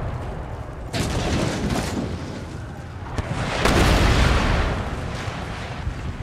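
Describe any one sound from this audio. Artillery shells explode with loud booming blasts.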